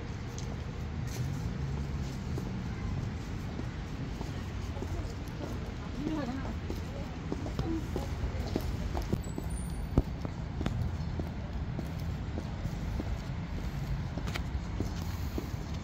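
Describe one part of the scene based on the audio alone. High heels click on pavement at a steady walking pace.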